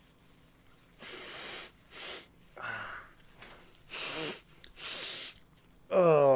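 A man sniffs and blows his nose in short bursts.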